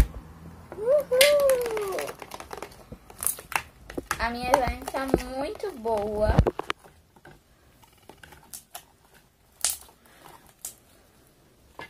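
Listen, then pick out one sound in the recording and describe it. A spoon stirs and squelches wet slime in a bowl.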